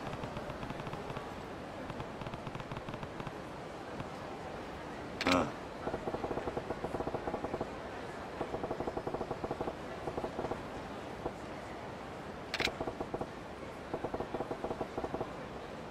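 Short electronic blips tick rapidly in bursts.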